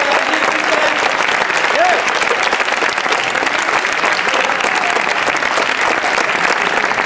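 Audience members cheer and whoop.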